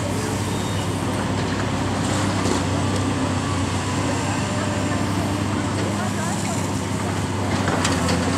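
Water from a hose sprays and hisses.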